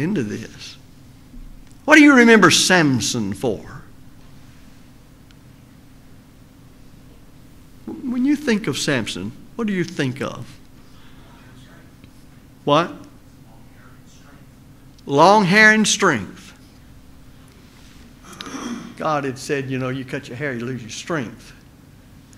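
An elderly man speaks slowly and calmly through a microphone, with pauses.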